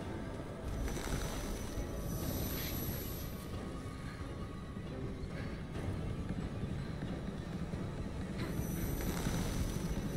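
A flashlight bursts with a crackling flare.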